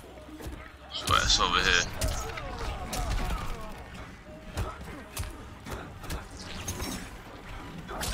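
A magic blast crackles and whooshes.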